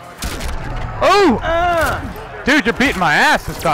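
Two men shout and exclaim excitedly into microphones.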